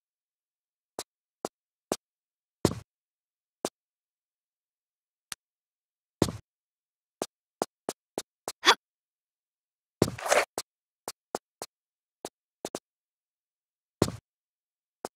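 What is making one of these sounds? Footsteps tap on a stone floor.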